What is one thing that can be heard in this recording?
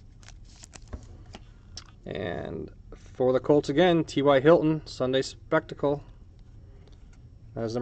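Trading cards slide and tap against each other.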